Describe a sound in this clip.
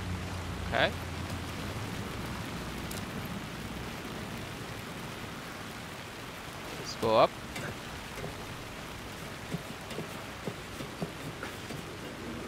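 Rain falls steadily and splashes on wet ground.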